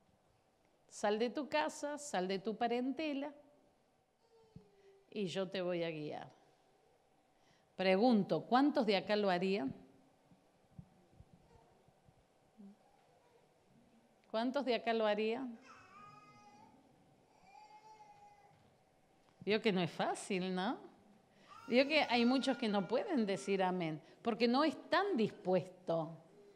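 A middle-aged woman speaks with animation through a microphone, in bursts with pauses, in a large echoing hall.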